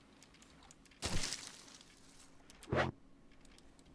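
Leaves rustle as they are gathered up.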